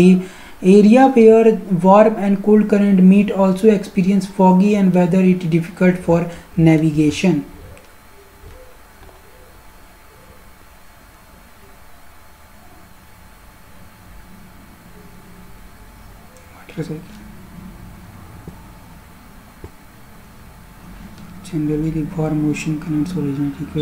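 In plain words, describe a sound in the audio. A woman explains calmly, close to a microphone.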